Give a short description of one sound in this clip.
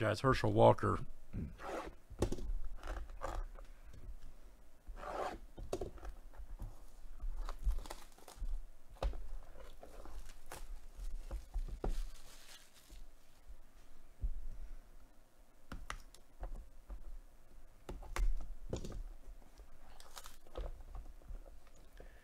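Plastic wrap crinkles and rustles as a box is handled.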